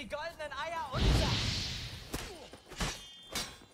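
A burst of fire roars with a loud whoosh.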